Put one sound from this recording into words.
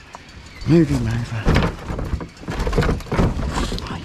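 A plastic bin lid bangs open and shut.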